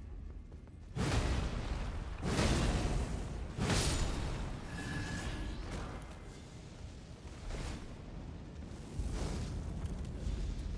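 A heavy weapon swings and strikes with loud whooshing thuds.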